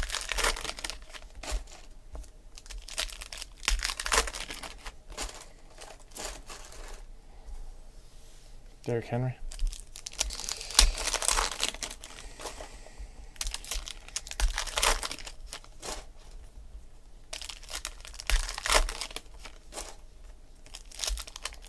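Trading cards shuffle and flick against each other.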